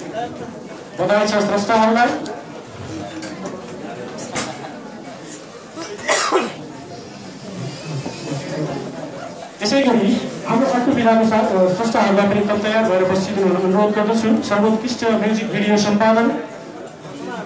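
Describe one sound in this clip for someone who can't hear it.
A man announces loudly over a loudspeaker in an echoing hall.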